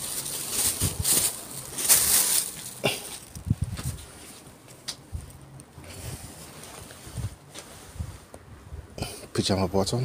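Fabric swishes as clothing is pulled out and shaken.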